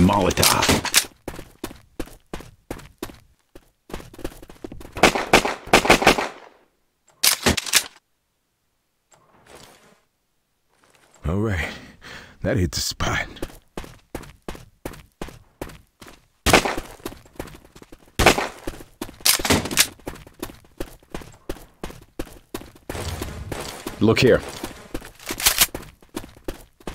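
A rifle fires quick bursts of loud shots.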